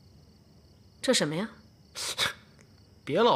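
A man speaks quietly and hesitantly nearby.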